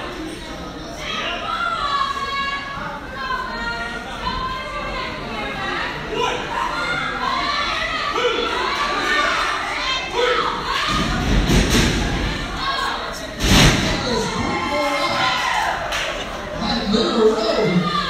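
A crowd of people talk and chatter in a large echoing hall.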